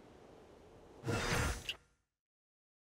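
A burst of magical energy whooshes.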